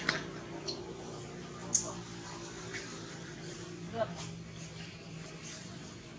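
A baby monkey suckles with soft, wet sucking sounds.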